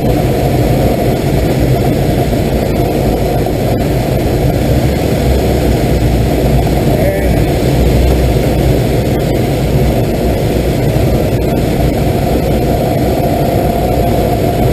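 Wind roars loudly and steadily past a glider's cockpit.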